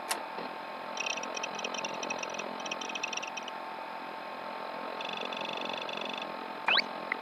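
A computer terminal chirps rapidly as text prints out.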